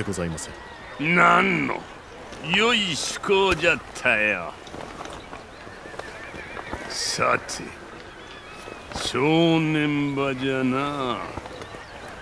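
An elderly man speaks in a deep, gruff voice.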